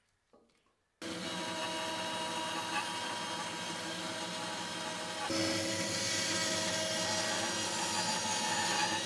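A band saw whirs steadily, cutting through wood.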